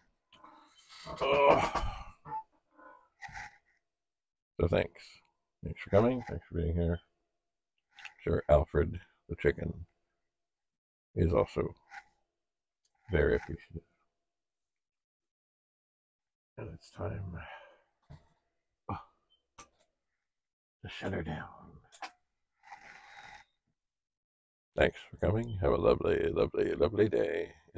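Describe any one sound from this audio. An older man speaks with animation into a close microphone, in bursts with pauses.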